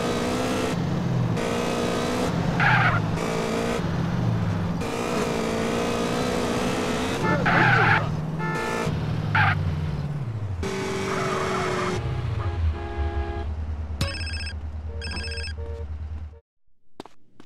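A motorcycle engine roars and revs up and down.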